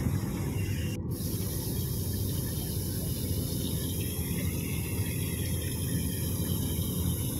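Water flows and ripples steadily.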